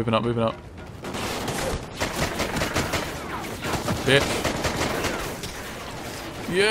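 Rapid rifle gunfire rattles nearby.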